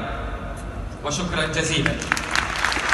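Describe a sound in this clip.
A man speaks briefly over a loudspeaker in a large hall.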